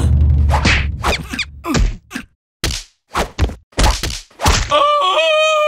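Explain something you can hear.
A cartoon creature is whipped against the ground with sharp thuds.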